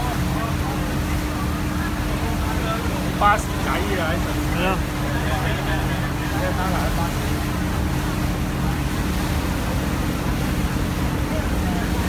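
Water rushes and splashes against a passing hull.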